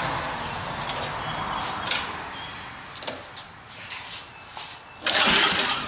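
Metal parts click and knock as a hand works on a small engine.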